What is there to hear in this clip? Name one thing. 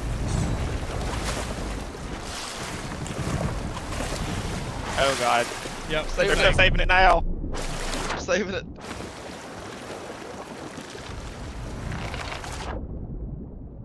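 Water splashes and rushes around a ship.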